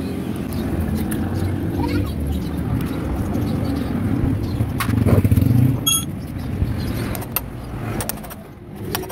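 A screwdriver clicks and scrapes against metal parts.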